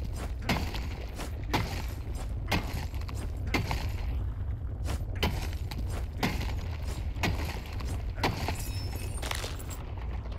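A pickaxe strikes rock in steady, ringing blows.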